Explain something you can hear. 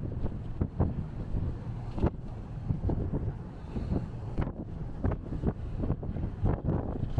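Strong wind buffets and rumbles in gusts outdoors.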